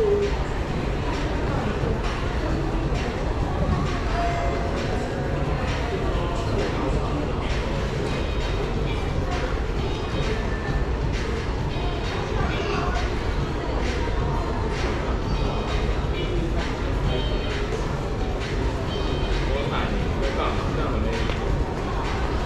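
Small wheels roll steadily over a hard tiled floor.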